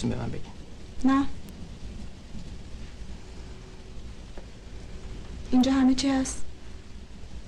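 A young woman answers softly nearby.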